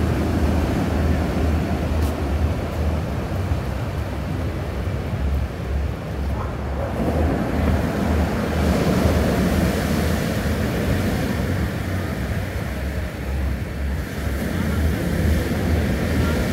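Waves crash and wash onto a pebble beach.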